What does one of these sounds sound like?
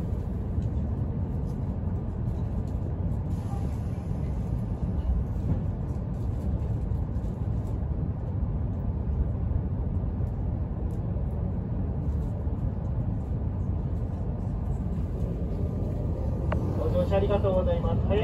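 A train rumbles steadily along the tracks with a low hum.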